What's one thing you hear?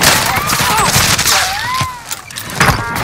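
Gunfire rattles loudly from a rifle.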